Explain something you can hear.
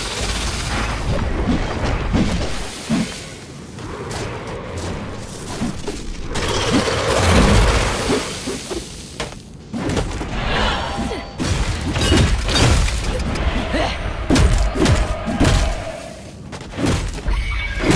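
Heavy blows and impacts thud again and again.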